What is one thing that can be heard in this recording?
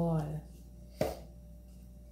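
A jug knocks down on a table.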